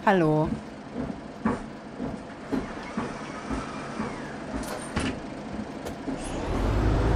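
Footsteps knock on the floor of a bus.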